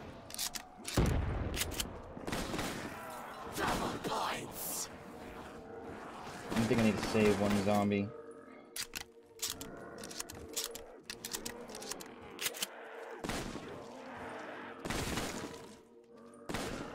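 Shotgun blasts boom loudly, one after another.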